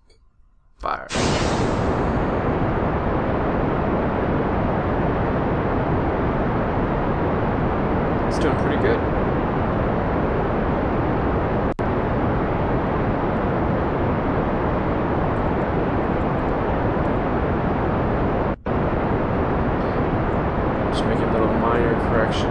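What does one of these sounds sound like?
A rocket engine roars loudly and steadily.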